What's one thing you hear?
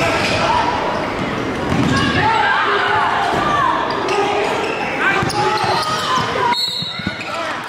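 A crowd cheers loudly in a large echoing gym.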